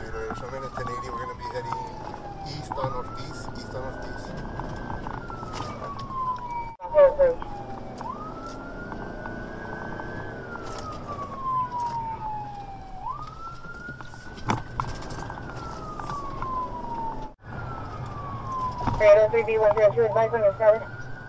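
A siren wails up and down, close by.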